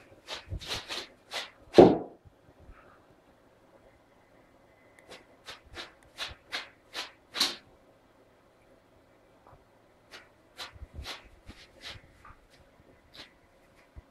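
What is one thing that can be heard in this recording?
A dog sniffs in quick, breathy bursts close by.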